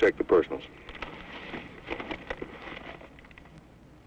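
A newspaper rustles as it is opened.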